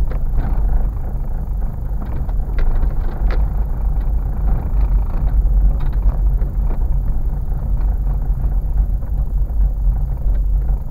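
A car engine rumbles low inside the cabin.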